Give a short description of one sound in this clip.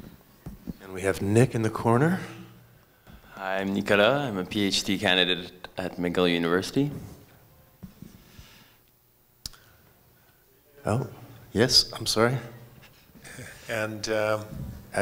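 A woman speaks through a microphone, with pauses, in a large room.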